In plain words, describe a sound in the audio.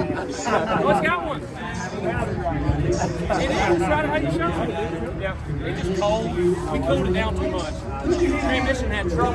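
Several other men talk over one another nearby.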